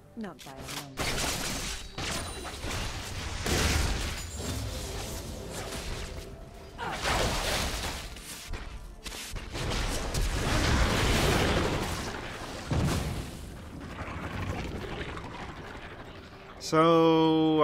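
Electronic game effects whoosh and crash in bursts.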